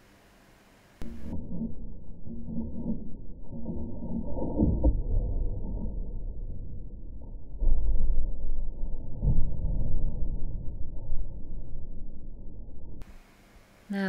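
A gouge cuts into spinning wood on a wood lathe, slowed down, deep and muffled.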